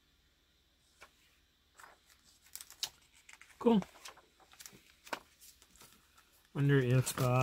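Glossy paper pages rustle and flap as they are turned by hand.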